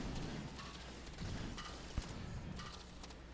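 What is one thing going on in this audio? A muffled explosion booms nearby.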